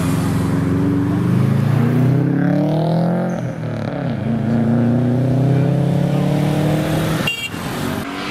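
A car engine revs loudly, rising and falling in pitch, then roars as the car pulls away.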